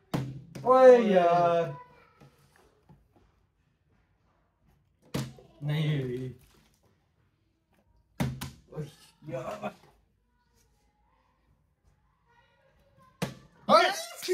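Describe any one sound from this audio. A plastic bottle thumps down onto a wooden table.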